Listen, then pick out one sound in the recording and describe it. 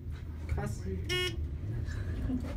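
A lift chime rings once.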